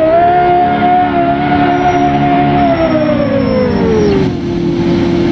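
A car engine roars at high speed, then its pitch drops as it slows down.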